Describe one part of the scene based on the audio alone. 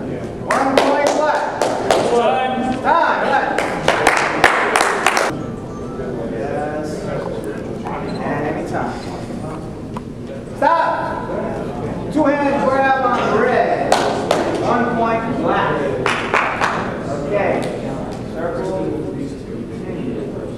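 A man speaks loudly with animation, echoing in a large hall.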